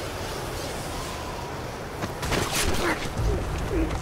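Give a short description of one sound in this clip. A body lands hard on rocky ground with a heavy thud.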